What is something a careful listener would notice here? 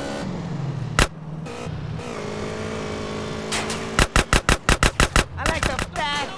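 A gun fires sharp shots, including a rapid burst.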